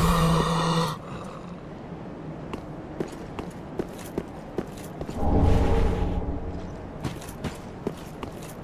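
Armoured footsteps clatter quickly on stone.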